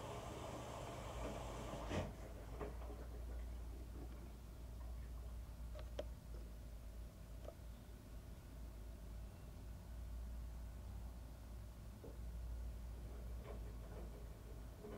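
A washing machine drum hums steadily as it turns.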